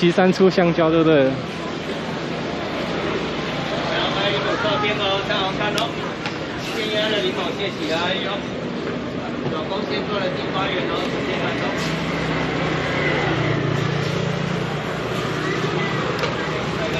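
Busy street noise hums steadily outdoors.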